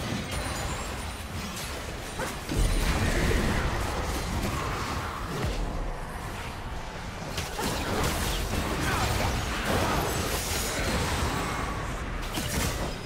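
Game spells whoosh and blast in a busy fight.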